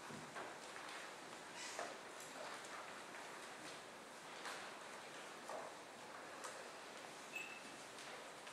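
A grand piano plays softly in a hall.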